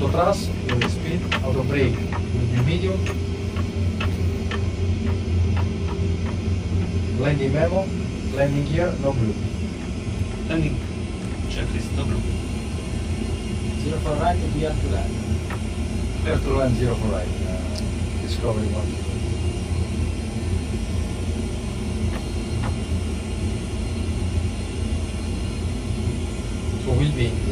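Jet engines hum with a steady low drone.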